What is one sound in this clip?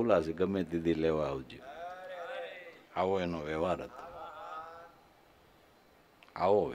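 An elderly man speaks calmly into a microphone, heard through loudspeakers in a large echoing hall.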